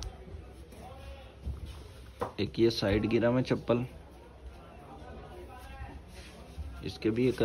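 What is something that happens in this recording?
A rubber sandal rustles and taps softly as a hand picks it up.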